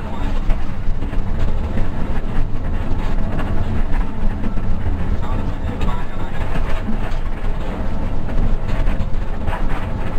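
The bus rattles and jolts over the road.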